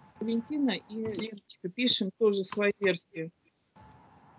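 An elderly woman speaks with animation through an online call.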